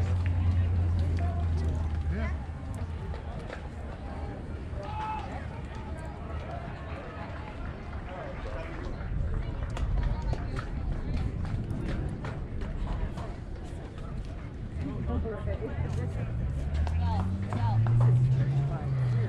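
Young players call out and chatter across an open outdoor field.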